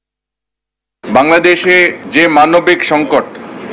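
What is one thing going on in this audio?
A man speaks formally into a microphone, heard through a loudspeaker.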